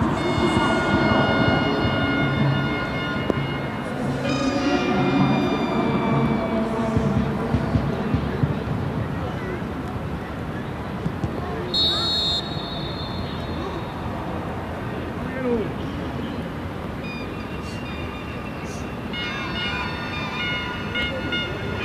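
A crowd murmurs in a large open stadium.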